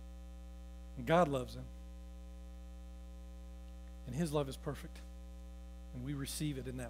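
A man speaks calmly in short phrases through a microphone.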